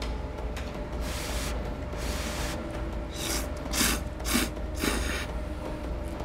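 A man loudly slurps noodles in quick bursts.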